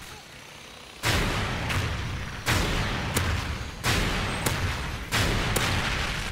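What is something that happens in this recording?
Heavy explosions boom one after another, each followed by a long rumble.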